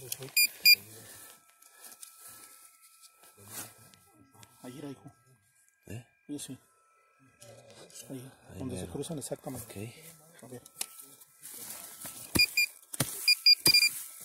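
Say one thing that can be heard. Footsteps rustle through dry grass outdoors.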